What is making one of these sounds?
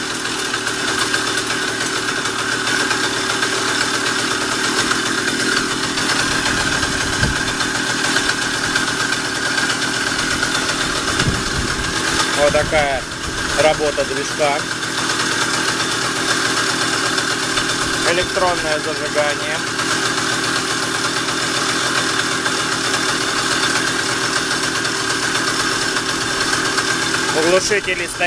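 A small motorbike engine idles steadily close by.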